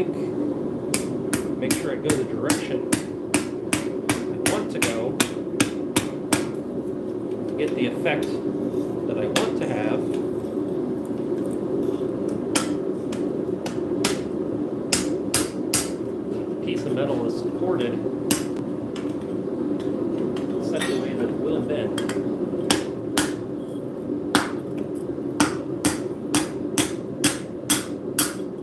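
A hammer strikes metal on an anvil with sharp, ringing blows in quick bursts.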